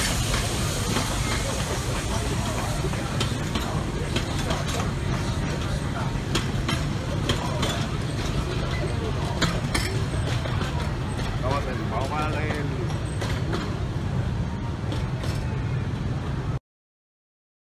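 An open train rumbles and clatters past along its track.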